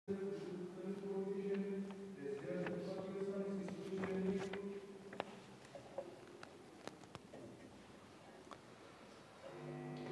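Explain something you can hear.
A man chants in a slow, steady voice, echoing in a large room.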